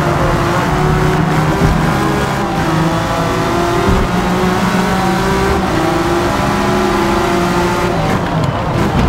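A racing car engine roars at high revs, climbing in pitch and dropping with each gear change.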